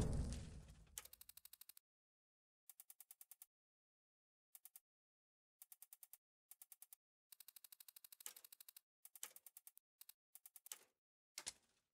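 Soft menu clicks tick in quick bursts.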